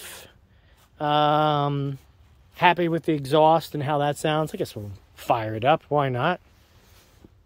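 A man speaks close by, calmly.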